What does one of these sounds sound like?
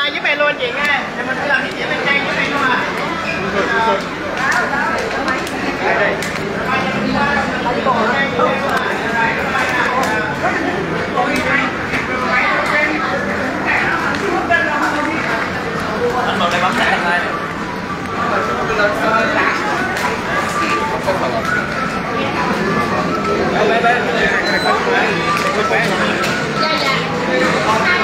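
A crowd chatters all around in an echoing indoor hall.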